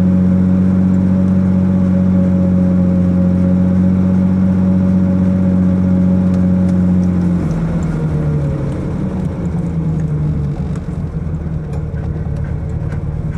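A car engine hums steadily, then changes pitch as the car moves off.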